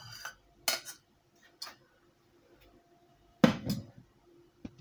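A metal pot and strainer clink.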